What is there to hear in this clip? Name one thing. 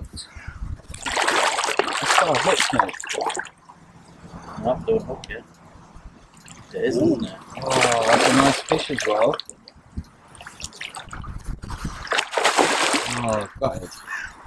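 A large fish splashes and thrashes at the water's surface.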